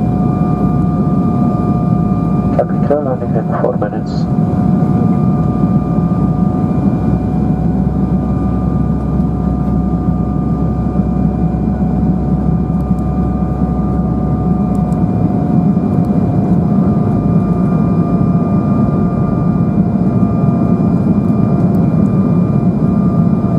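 Jet engines roar steadily with a low drone and a constant whine.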